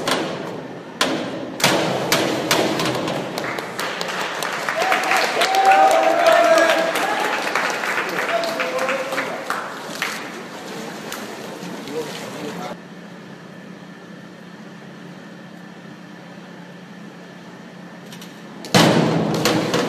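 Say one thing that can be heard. A diver plunges into the water with a loud splash in an echoing hall.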